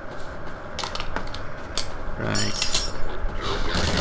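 A rifle is reloaded with metallic clicks.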